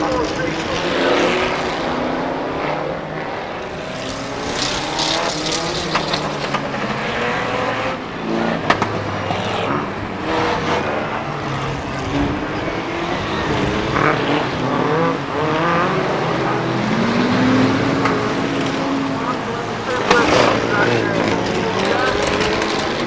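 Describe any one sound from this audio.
Car engines roar and rev up and down.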